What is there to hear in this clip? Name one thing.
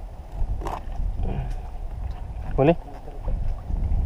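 Water splashes against a small boat.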